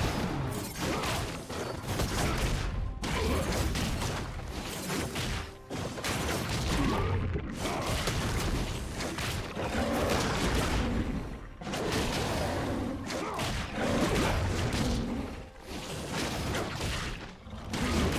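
Fantasy fighters clash, with whooshing and thudding ability sounds.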